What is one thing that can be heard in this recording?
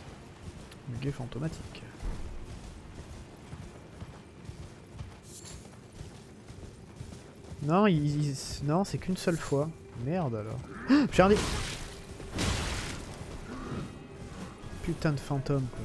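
A horse's hooves thud on grass.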